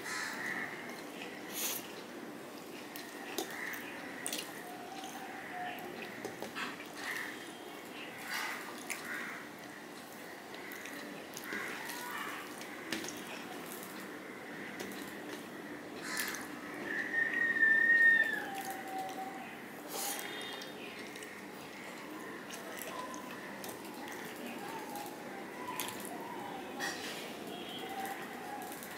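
Fingers squish and mix rice on a metal plate.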